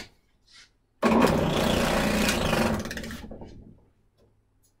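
An electric sander motor runs briefly and winds down.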